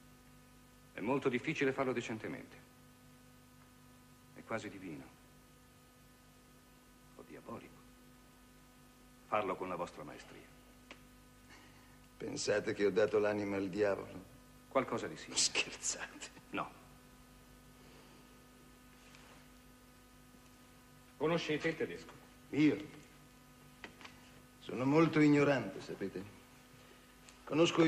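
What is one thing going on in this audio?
A man speaks calmly in short phrases, with pauses between them.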